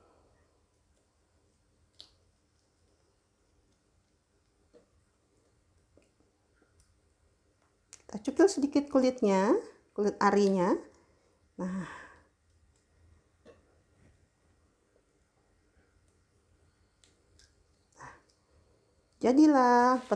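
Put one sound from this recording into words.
Bean pods crack softly as fingers split them open.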